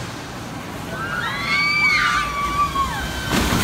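Riders scream on a roller coaster.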